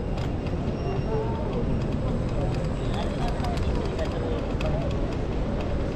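A tram hums and rolls slowly past close by.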